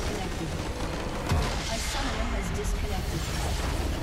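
A large crystal tower explodes with a deep boom.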